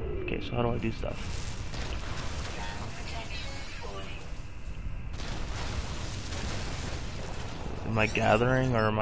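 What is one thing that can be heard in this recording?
A laser beam hisses and crackles steadily.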